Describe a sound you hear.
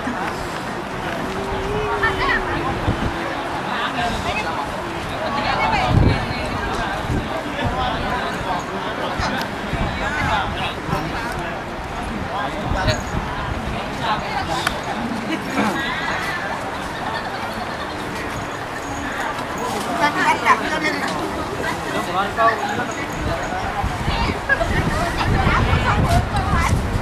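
A crowd of young men and women chatters all around outdoors.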